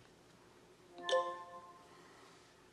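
A phone gives a short chime.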